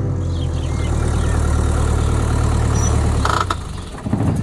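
A vehicle engine rumbles steadily as a truck drives up.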